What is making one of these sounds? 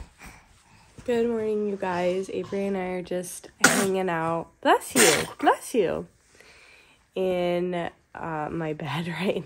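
A young woman talks close by, calmly and with animation.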